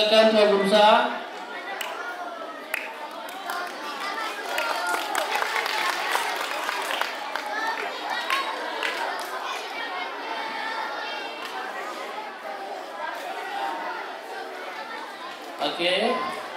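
A crowd of children chatters loudly nearby.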